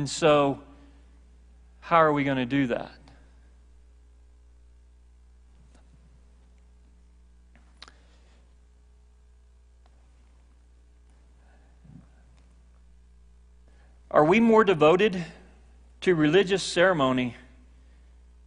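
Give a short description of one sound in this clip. A middle-aged man speaks through a microphone in short bursts, with long pauses.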